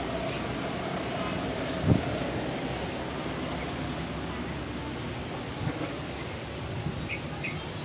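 A breeze blows outdoors in the open air.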